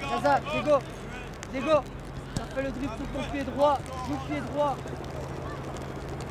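A man shouts instructions outdoors.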